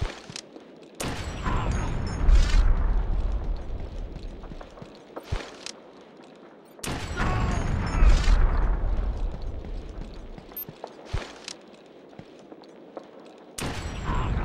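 A rifle fires loud shots that echo and rumble away.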